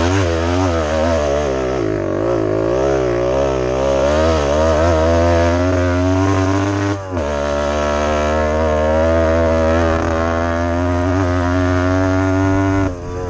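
A dirt bike engine roars close by, its pitch rising and falling as the rider works the throttle.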